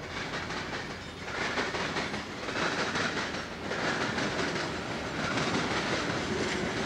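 A freight train rumbles past close by, its wheels clattering rhythmically over the rail joints.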